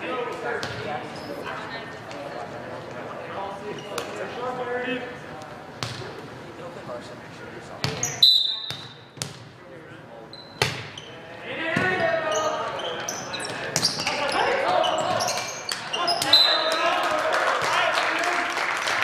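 Players and spectators call out and chatter loudly in an echoing gym.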